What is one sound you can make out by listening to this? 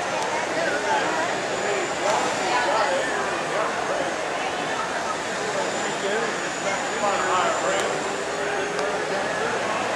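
A crowd chatters and murmurs in the background outdoors.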